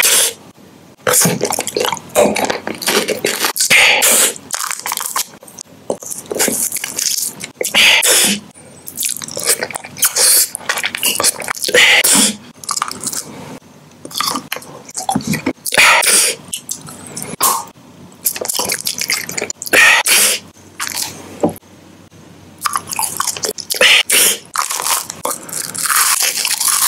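A man crunches and bites into candy very close up.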